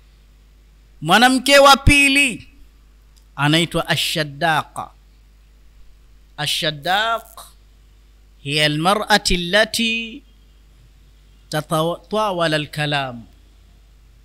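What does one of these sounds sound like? A man speaks calmly into a microphone, in short phrases with pauses.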